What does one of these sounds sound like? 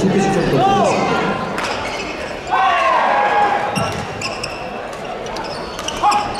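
Sneakers squeak sharply on a hard court floor in a large echoing hall.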